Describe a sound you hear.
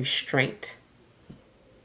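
A woman speaks briefly close by.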